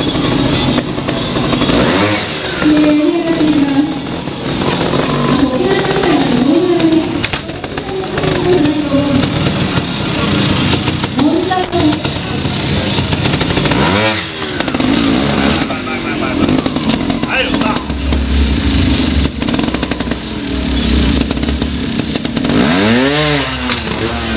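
A motorcycle engine idles and revs in sharp bursts close by.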